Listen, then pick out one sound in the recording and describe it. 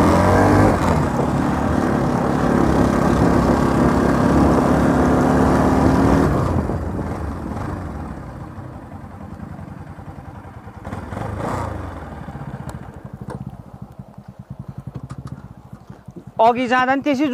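A motorcycle engine hums steadily while riding, then quiets down.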